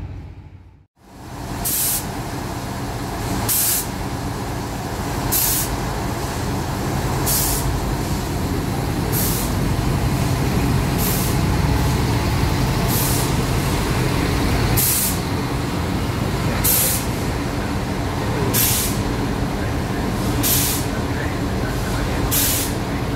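A diesel train engine rumbles as the train slowly pulls away.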